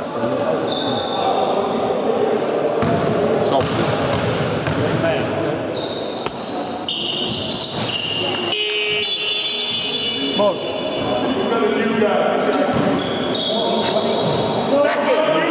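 Several young men call out and talk loudly across the court.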